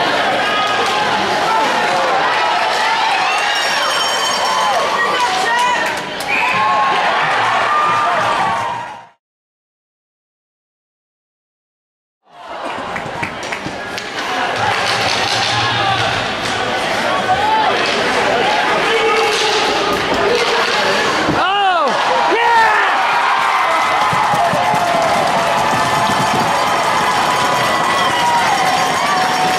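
A crowd cheers and shouts in an echoing arena.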